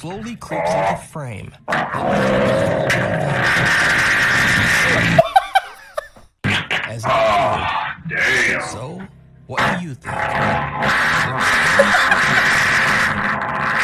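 A young man shouts with animation close to a microphone.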